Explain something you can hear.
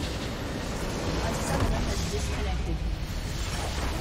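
A large structure explodes with a deep booming crash.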